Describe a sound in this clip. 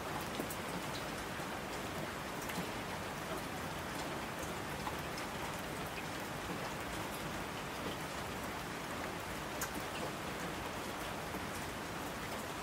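Water rushes down in torrents.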